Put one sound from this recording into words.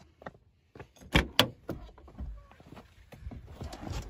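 A car door handle clicks and the door opens.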